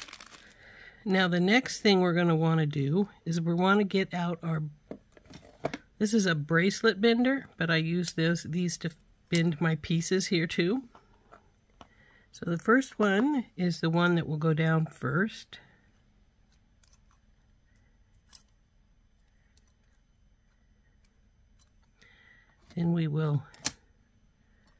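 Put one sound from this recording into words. Small metal pieces clink and tap against each other.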